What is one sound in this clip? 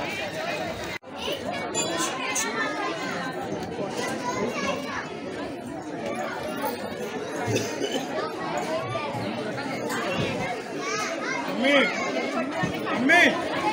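A crowd chatters and children shout in the background.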